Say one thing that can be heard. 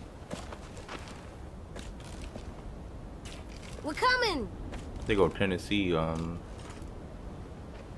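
Footsteps crunch on grass and gravel.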